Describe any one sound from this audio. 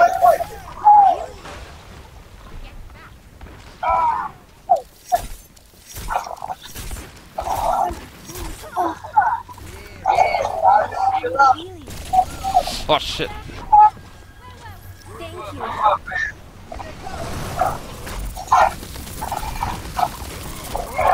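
A game gun fires in quick bursts.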